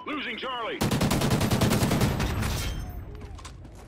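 Rapid automatic gunfire rattles loudly and echoes.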